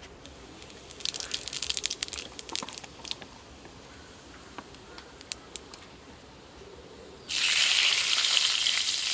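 Food sizzles and crackles in hot oil in a wok.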